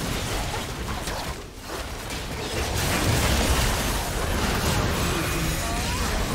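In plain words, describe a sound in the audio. Spell blasts and weapon hits crackle and thud in a fast game battle.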